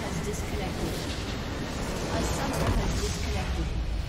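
A tower crumbles and explodes in a loud burst.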